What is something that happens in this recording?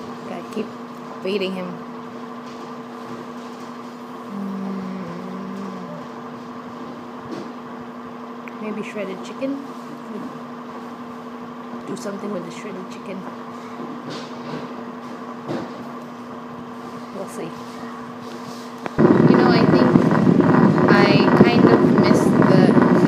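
A young woman speaks calmly and close up, with pauses.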